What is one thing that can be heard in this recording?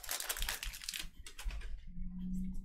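Trading cards shuffle and rustle in hands.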